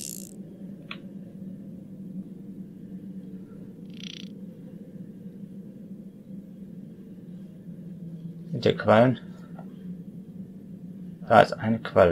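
A muffled underwater rumble and bubbling goes on steadily.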